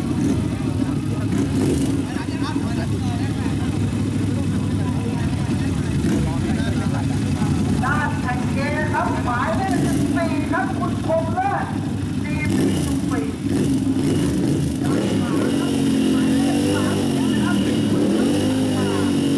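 A motorcycle engine rumbles loudly at idle and revs up and down.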